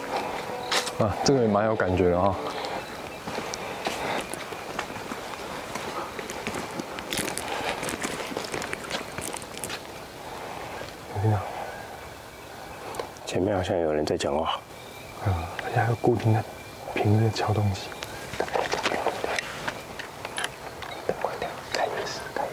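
A man speaks quietly and tensely, close by.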